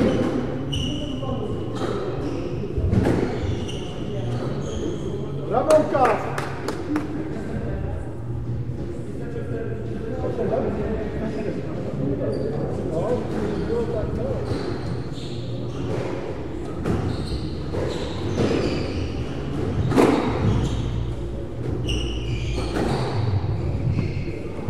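A squash ball is struck hard with a racket and smacks against the wall, echoing in a hard-walled room.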